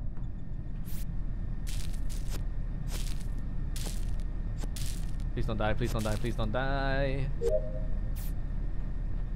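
Short electronic swishes and clicks sound in quick succession.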